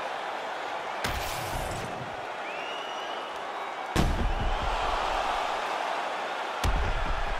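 Heavy punches land with deep thuds.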